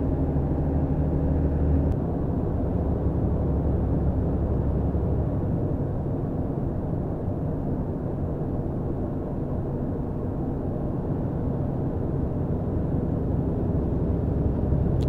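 A car's engine hums and tyres roar steadily on a highway.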